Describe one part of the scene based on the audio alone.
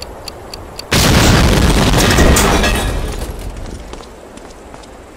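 A loud explosion booms and rumbles away.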